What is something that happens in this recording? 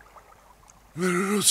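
An elderly man calls out loudly nearby.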